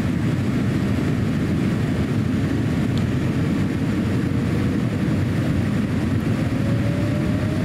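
An airliner's engines roar steadily inside the cabin.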